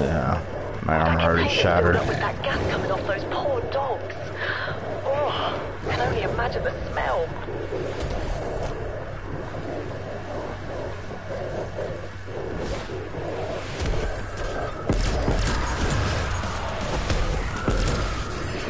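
A young man talks casually into a headset microphone.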